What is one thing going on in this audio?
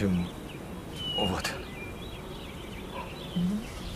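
A man speaks calmly at close range.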